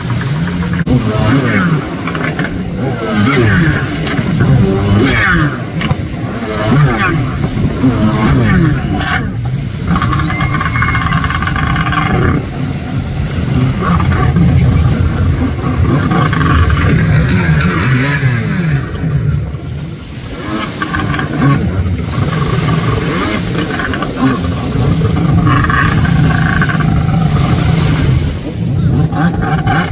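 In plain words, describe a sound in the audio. A stand-up jet ski engine revs up and down.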